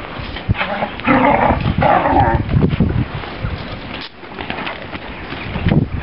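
Dogs growl and snarl as they play-fight.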